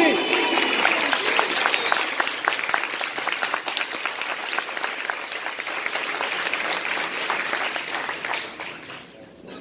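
An audience applauds with lively clapping that fades away.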